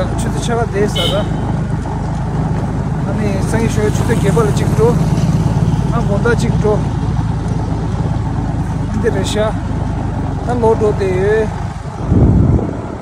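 A motorbike engine rumbles steadily.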